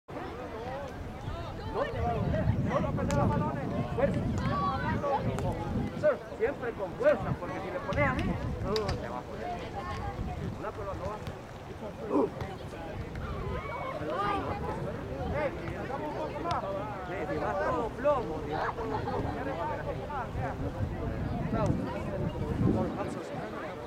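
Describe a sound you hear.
Men shout and call out at a distance.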